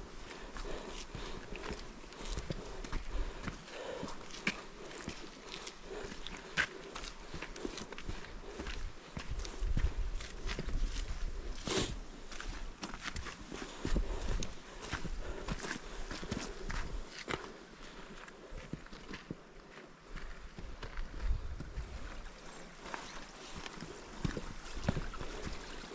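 Footsteps crunch on a rocky trail.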